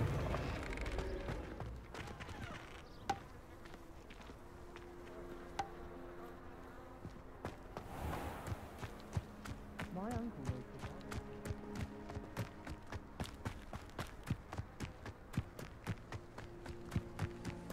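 Footsteps run quickly over stone and grass.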